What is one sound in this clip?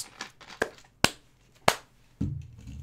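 A man claps his hands sharply.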